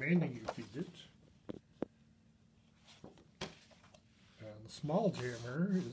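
Sheets of paper rustle and slide as pages are turned by hand.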